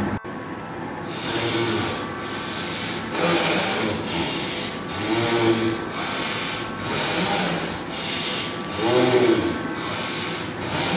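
A man breathes out sharply through his nose in a steady, repeated rhythm.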